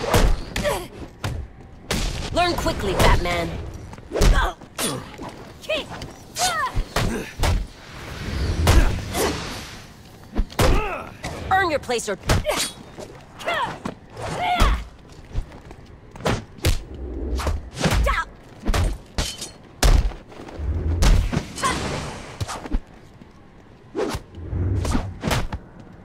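Punches and kicks land with heavy thuds again and again.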